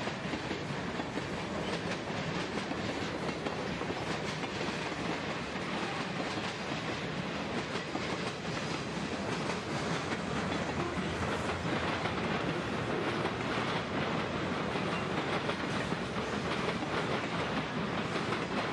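A freight train rumbles past close by, its wheels clattering on the rails.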